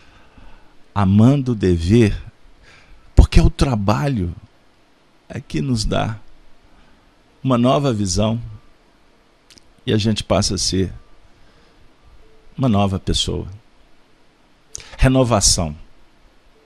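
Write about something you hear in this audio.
A man speaks calmly into a microphone, in short phrases with pauses between them.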